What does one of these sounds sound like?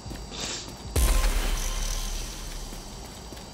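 A loud whooshing burst sounds and fades.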